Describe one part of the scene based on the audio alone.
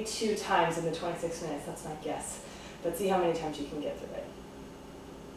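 A young woman speaks calmly and clearly, close by in a room.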